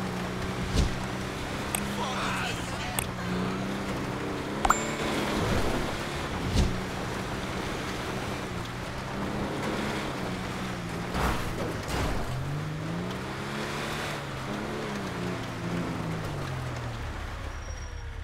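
A truck engine hums and revs while driving over snow.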